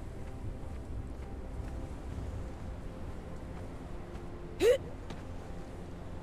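Footsteps crunch softly on sand.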